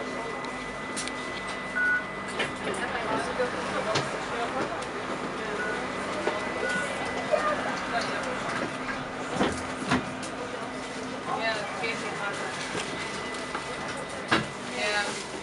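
The bus body rattles and knocks over bumps.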